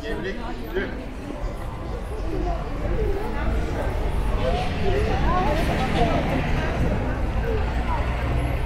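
Low traffic noise hums steadily outdoors.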